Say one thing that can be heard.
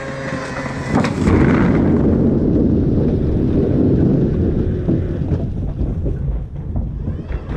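Potatoes tumble and rumble out of a tipping box onto a heap.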